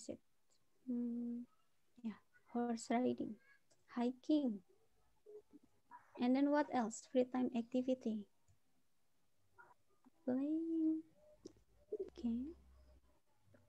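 A woman explains calmly over an online call.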